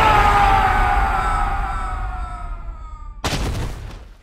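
A heavy blow lands with a ringing tone that slowly falls and fades.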